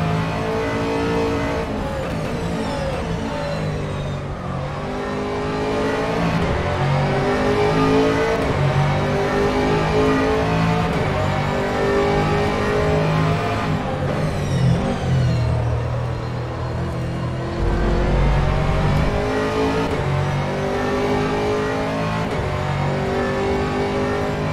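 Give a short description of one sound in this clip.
A race car engine roars loudly from inside the cockpit, rising and falling in pitch.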